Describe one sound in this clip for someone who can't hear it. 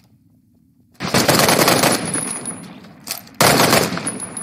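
A rifle fires in full-auto bursts.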